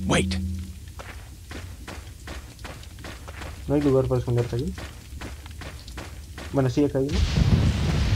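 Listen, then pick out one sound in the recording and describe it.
Footsteps crunch steadily on rough ground.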